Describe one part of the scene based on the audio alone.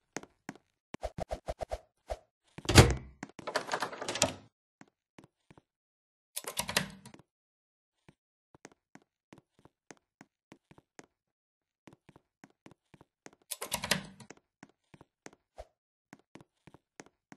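Light footsteps patter quickly and steadily.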